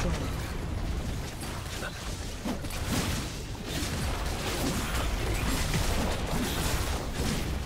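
Game weapons strike with sharp impacts.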